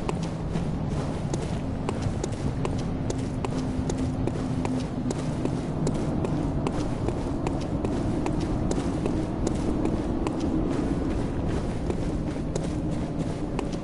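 Footsteps tap steadily on a stone street.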